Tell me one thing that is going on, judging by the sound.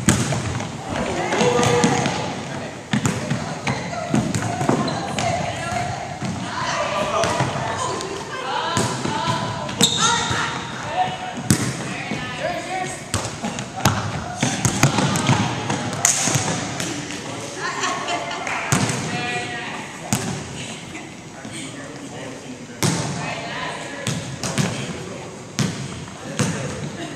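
Young men and women shout and call out to each other in a large echoing gym.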